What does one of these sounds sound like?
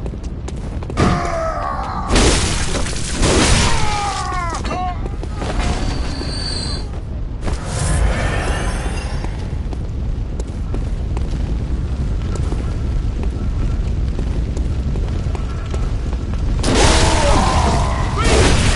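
A creature screeches in pain.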